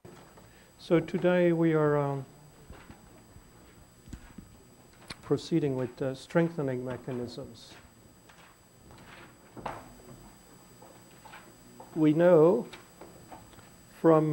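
A man lectures through a microphone, speaking calmly with pauses.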